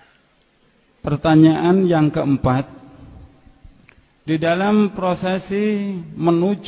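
A man chants loudly through a microphone.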